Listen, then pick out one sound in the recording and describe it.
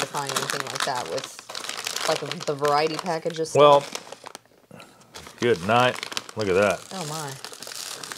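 Foil wrapping crinkles and rustles.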